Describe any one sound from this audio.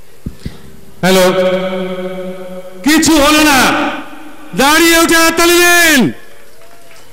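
A woman sings through a microphone.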